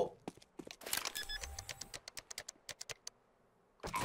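Electronic keypad beeps rapidly.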